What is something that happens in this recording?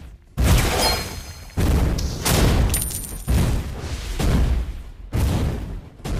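Video game spell effects whoosh and crackle in quick bursts.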